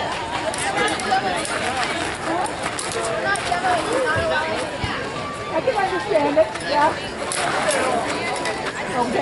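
Swords clash.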